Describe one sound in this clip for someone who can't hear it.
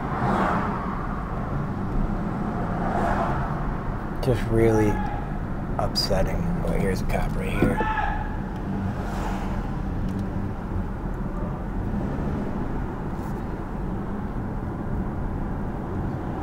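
A car's engine hums steadily with tyres rumbling on the road.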